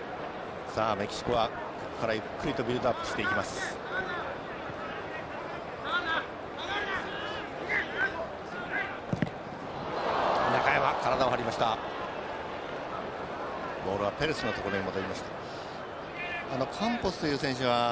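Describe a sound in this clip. A large stadium crowd murmurs steadily and swells into a roar.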